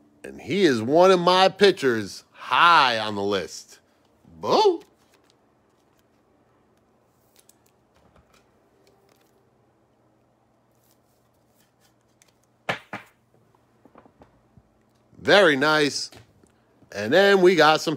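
Trading cards slide and tap on a wooden table.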